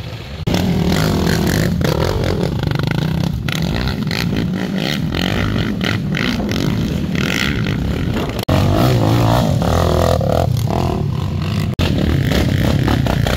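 Tyres churn through thick mud.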